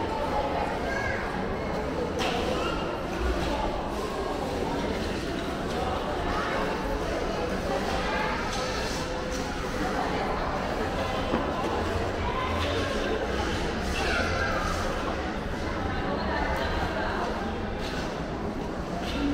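A crowd of children and adults chatter in a large echoing hall.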